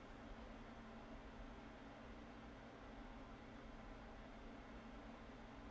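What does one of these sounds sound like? A man breathes in slowly and deeply.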